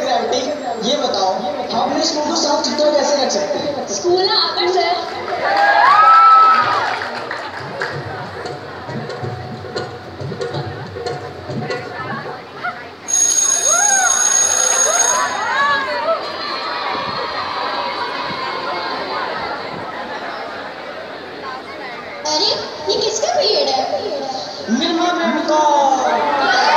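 A crowd of children and adults chatters and calls out in a large echoing hall.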